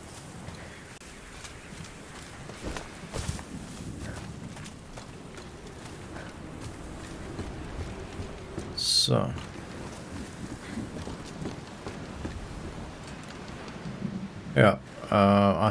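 Footsteps crunch and thud on dirt and wooden boards.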